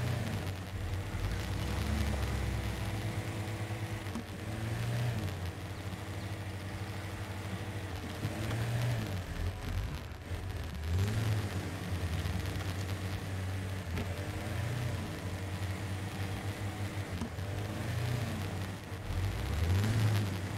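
An off-road vehicle's engine rumbles and revs up and down as it drives.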